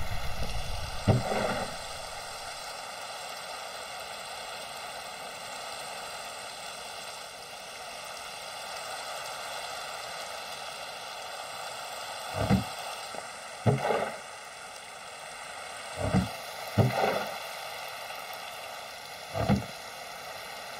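A wooden barrel lid creaks open and thuds shut several times.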